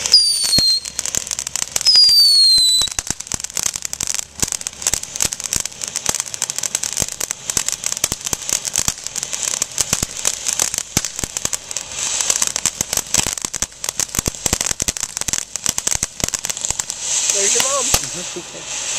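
A firework fountain hisses and crackles with rapid pops.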